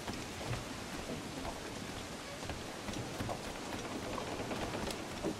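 Waves wash against a ship's hull.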